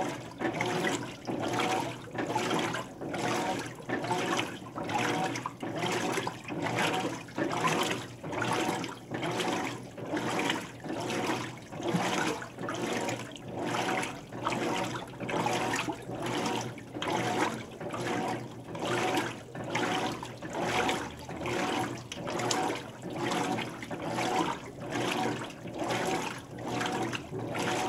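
Water sloshes and churns in rhythmic surges as a washing machine agitates.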